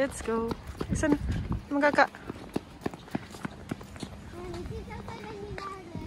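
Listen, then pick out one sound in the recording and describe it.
Small shoes patter on pavement.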